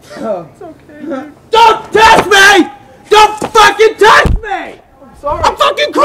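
A young man shouts angrily close by.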